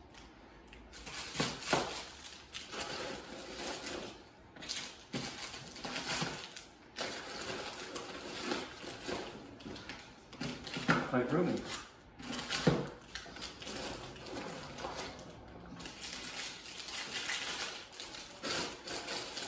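Plastic wrappers crinkle and rustle as packets are put into a bag.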